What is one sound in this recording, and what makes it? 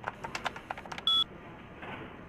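A short electronic beep sounds once.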